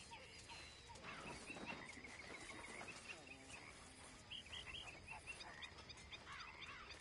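Footsteps pad softly across grass.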